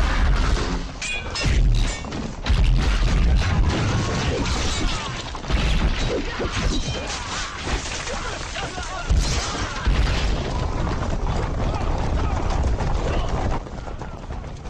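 Soldiers clash and shout in a loud, chaotic battle.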